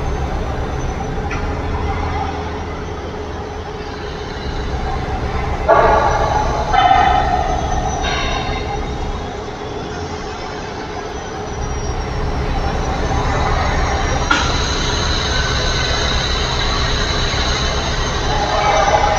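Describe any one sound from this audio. A truck engine drones steadily, rising and falling with the road.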